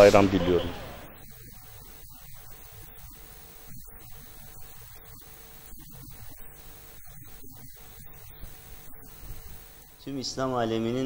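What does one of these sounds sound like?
A middle-aged man speaks quietly into a handheld microphone outdoors.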